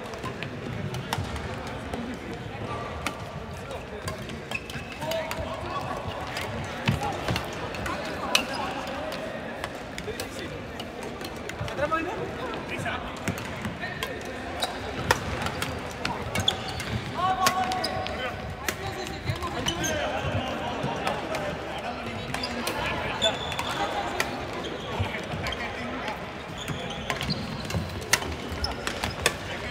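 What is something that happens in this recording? Many men and women talk and call out in the distance, echoing through a large hall.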